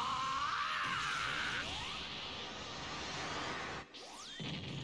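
An energy blast whooshes and roars.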